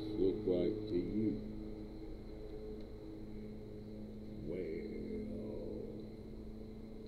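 An older man speaks calmly and briefly into a close microphone.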